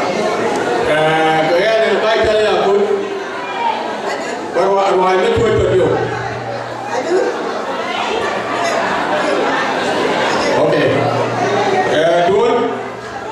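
A man sings into a microphone through loudspeakers in a large echoing hall.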